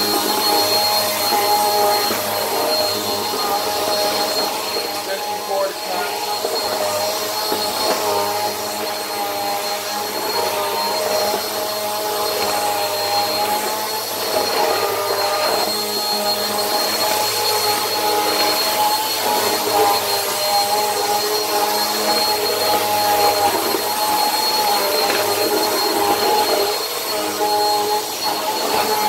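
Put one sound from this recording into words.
An upright vacuum cleaner runs with a loud, steady whine.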